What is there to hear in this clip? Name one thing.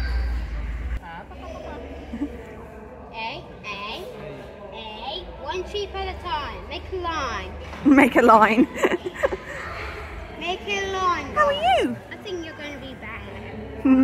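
A young boy talks with excitement close by.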